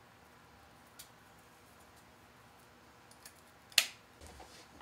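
Scissors snip through ribbon.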